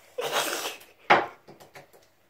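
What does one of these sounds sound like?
A toilet lid knocks shut.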